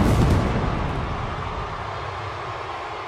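Pyrotechnics burst with a deep whoosh.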